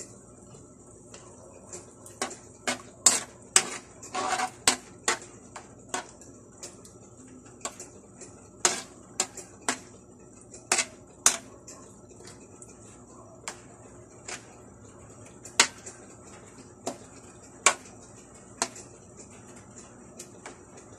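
Sauce simmers and bubbles softly in a pan.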